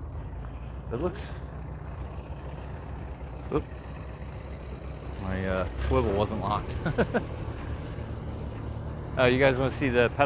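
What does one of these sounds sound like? A small tractor engine runs and putters nearby.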